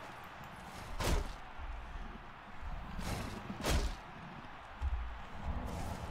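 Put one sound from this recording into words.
Heavy blows thud against a shield.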